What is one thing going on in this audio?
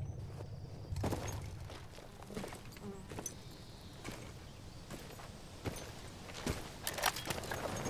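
Footsteps crunch on soft dirt.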